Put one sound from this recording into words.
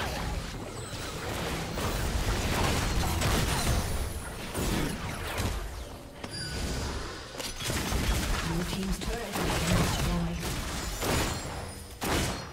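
Game spell effects crackle and whoosh in a busy fight.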